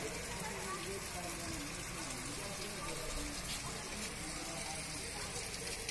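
Water pours from stone spouts and splashes steadily into a basin.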